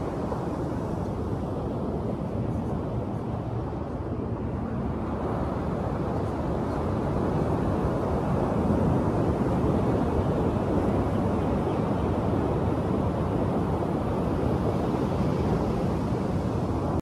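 Waves wash steadily onto a beach nearby.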